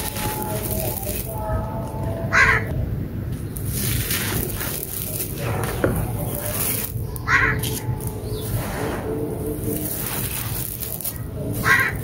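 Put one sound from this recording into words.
Loose dry dirt trickles and pours down onto a pile.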